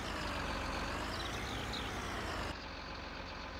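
A machine engine hums steadily.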